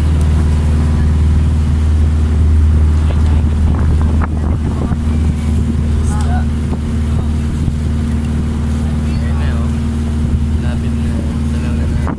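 A boat engine drones steadily and loudly close by.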